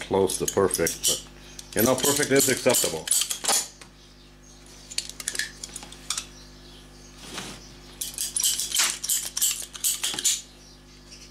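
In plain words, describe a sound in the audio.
A ratcheting cutter snips through rubber hose with sharp clicks.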